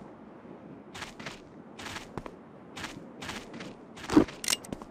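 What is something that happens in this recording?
Footsteps scuff on stone.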